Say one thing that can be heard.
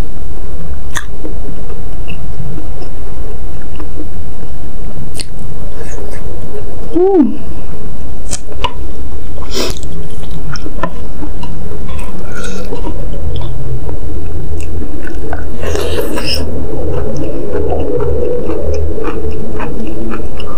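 A wooden spoon scrapes and taps against a bowl.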